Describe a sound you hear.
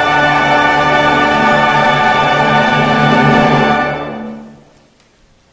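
A choir and organ hold a loud final chord in a large echoing hall, then fade out.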